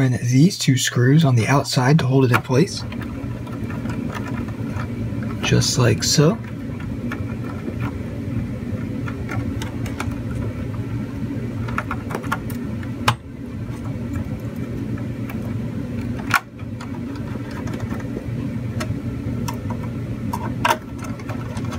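Plastic and metal parts click and knock as hands fit a computer card into place.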